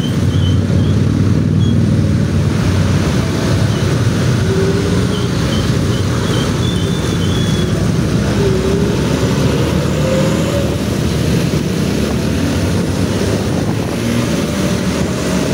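A motorbike engine hums steadily up close.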